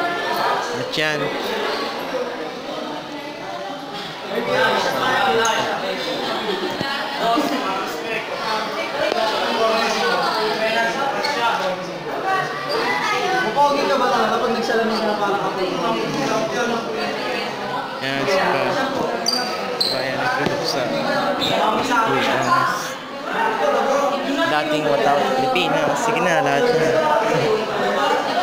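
A crowd of young people chatter nearby in an echoing room.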